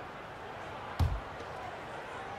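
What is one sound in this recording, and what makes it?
A basketball bounces once on a hard court.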